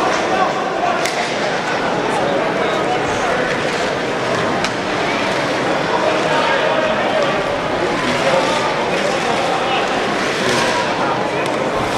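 A crowd murmurs and chatters throughout a large echoing arena.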